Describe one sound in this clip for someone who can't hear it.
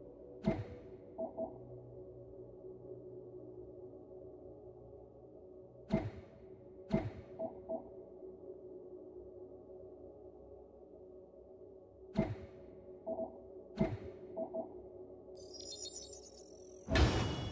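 Short menu clicks sound now and then as a game's selection changes.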